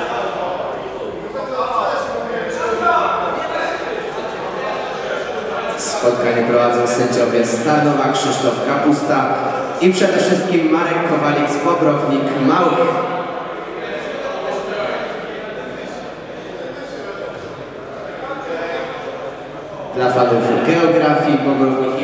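Several men argue loudly in a large echoing hall.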